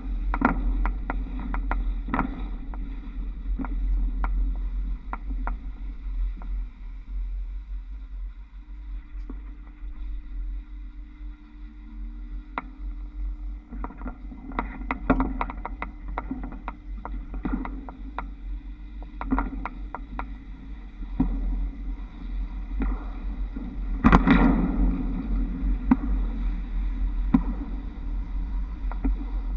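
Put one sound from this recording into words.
Trolley poles clack and rattle over overhead wire fittings.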